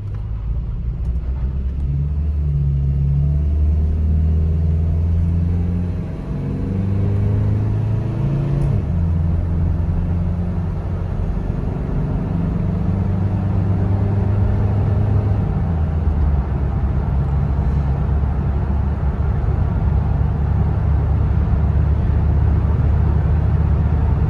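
A car engine hums loudly and revs up as the car speeds up.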